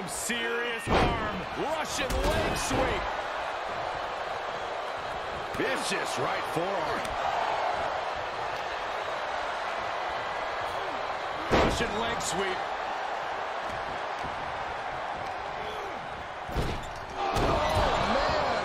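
Heavy thuds of bodies slam onto a wrestling ring mat.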